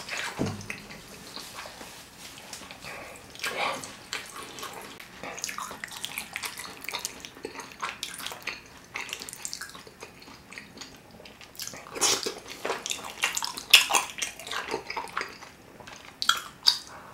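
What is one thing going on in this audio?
A man chews food noisily, close up.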